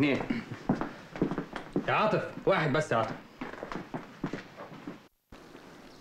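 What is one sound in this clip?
A man speaks tensely and close by.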